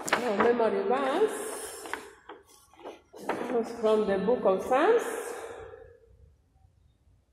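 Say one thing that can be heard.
A child reads out words loudly in a sing-song voice.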